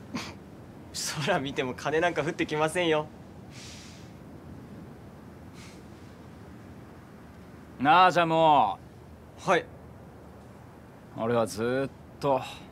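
A young man speaks calmly and closely.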